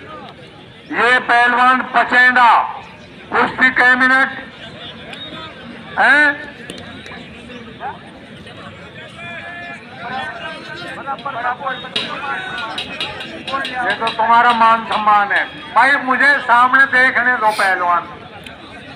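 A man calls out loudly over a loudspeaker.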